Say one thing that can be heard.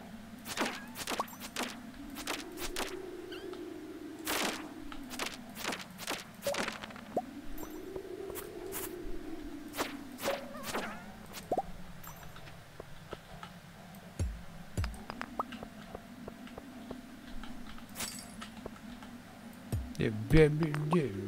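Game sound effects of a pickaxe chip at stone with sharp clinks.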